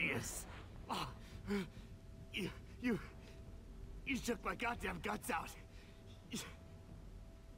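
A wounded man speaks in a strained, shaky voice.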